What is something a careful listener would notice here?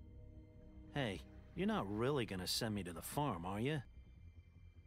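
A man pleads in a gruff voice.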